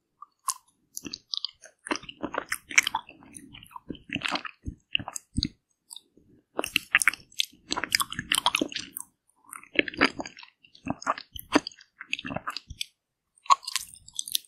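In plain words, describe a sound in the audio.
A woman bites into a frozen ice cream bar with crisp crunching sounds close to a microphone.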